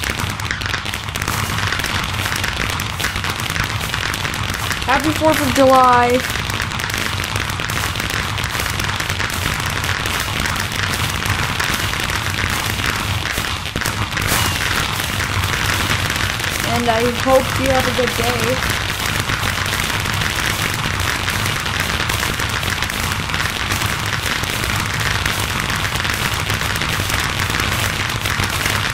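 Fireworks crackle and pop continuously.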